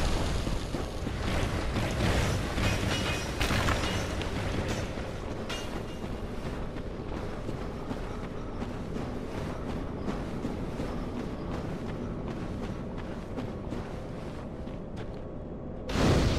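Armored footsteps crunch on a rocky floor.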